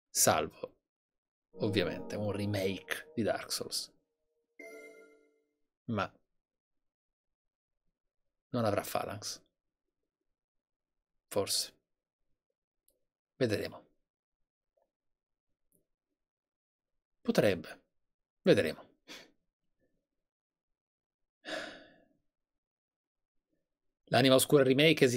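A man talks into a close microphone in short bursts with long pauses.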